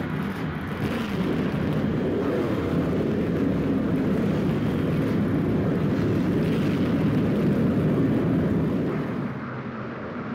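Race car engines rumble loudly together.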